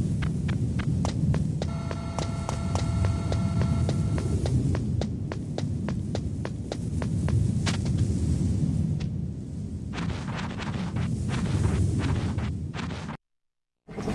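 Footsteps clatter on a metal floor.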